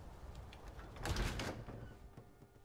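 A heavy wooden door opens with a loud creak and thud.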